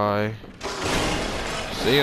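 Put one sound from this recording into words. A beast snarls and growls up close.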